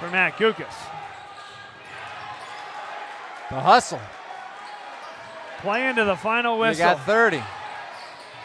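Spectators shout loudly in bursts.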